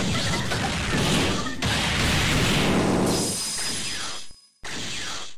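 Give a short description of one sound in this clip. Loud explosive hit effects crash and boom in quick succession.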